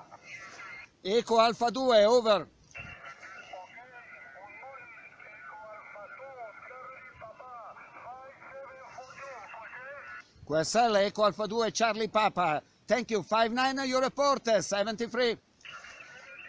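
A man speaks close up into a radio handset, calmly.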